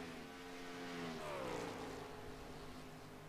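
A race car engine whooshes past close by, its pitch dropping.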